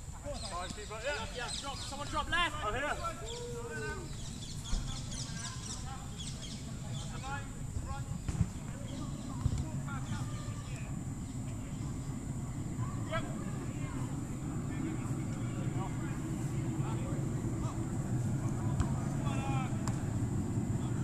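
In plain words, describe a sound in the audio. Young men shout to each other across an open pitch.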